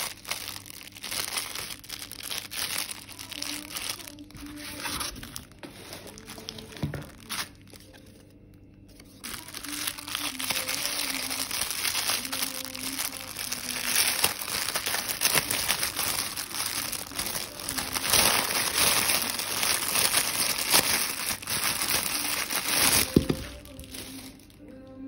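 A thin plastic bag crinkles as hands open it.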